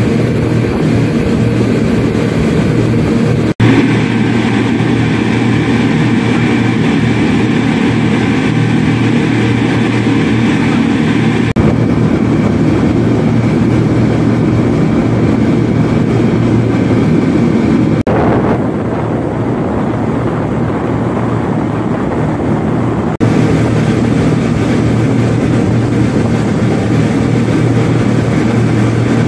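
Outboard engines drone steadily at speed.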